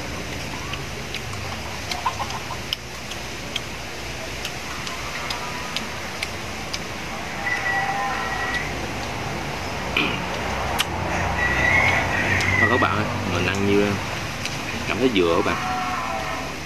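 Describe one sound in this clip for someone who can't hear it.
Shells click against each other.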